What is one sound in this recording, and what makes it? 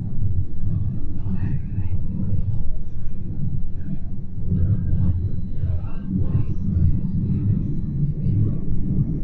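Wind blows outdoors, buffeting the microphone with a low rumble.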